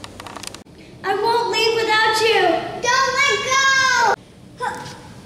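A young girl sings loudly.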